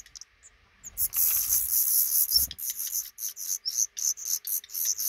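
Baby birds chirp loudly and rapidly, begging close by.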